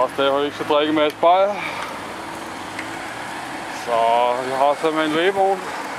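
An engine idles nearby.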